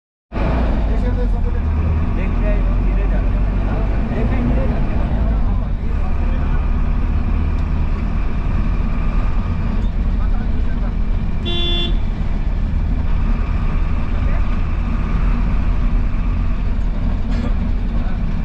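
Traffic passes along a busy street outside.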